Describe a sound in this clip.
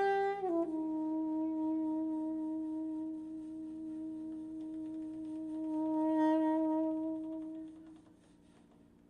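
A double bass plays softly underneath.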